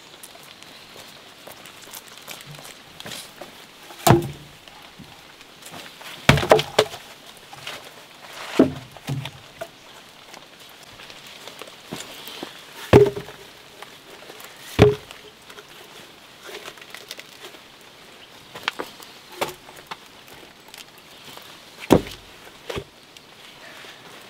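Footsteps crunch on dry soil.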